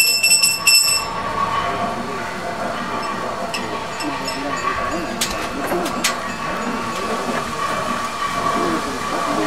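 Men talk in low voices nearby.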